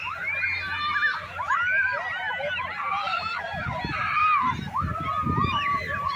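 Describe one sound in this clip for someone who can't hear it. Many children shout and scream excitedly outdoors.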